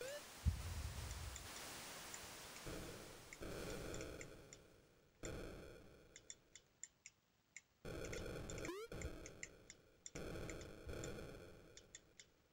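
A Commodore 64 game gives out short electronic blips and beeps.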